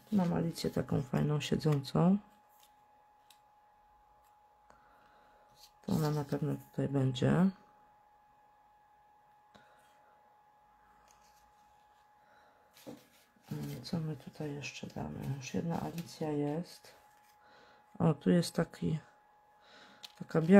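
Paper rustles softly as small pieces are handled and pressed down.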